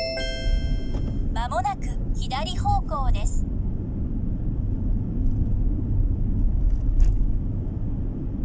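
A car's engine hums and its tyres rumble steadily on the road.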